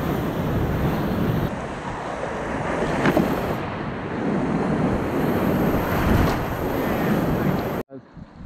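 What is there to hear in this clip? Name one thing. Whitewater rapids roar and rush loudly close by.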